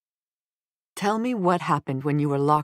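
A woman speaks with concern, close by.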